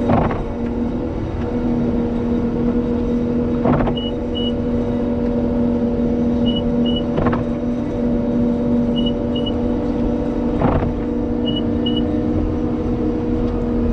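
A plow blade scrapes and pushes snow.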